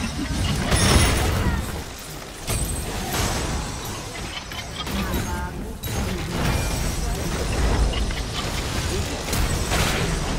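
Game spell effects and combat sounds clash and burst.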